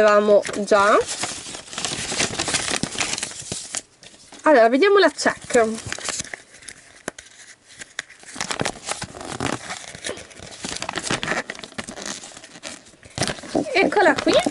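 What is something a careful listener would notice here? A paper sheet rustles as it is unfolded.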